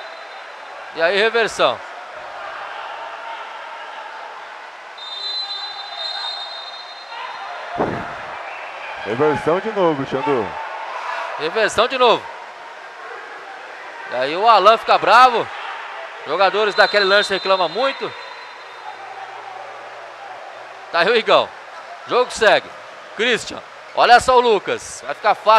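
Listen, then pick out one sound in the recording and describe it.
Men shout across an echoing indoor court.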